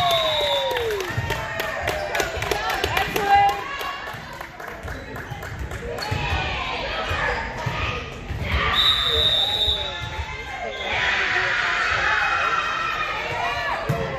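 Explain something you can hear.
Girls and young women talk and call out with animation in a large echoing gym.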